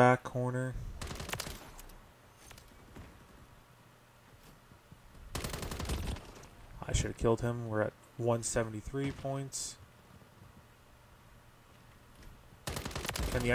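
Automatic gunfire rattles in short bursts.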